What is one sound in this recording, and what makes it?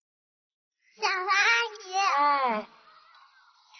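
A young girl calls out excitedly and close by.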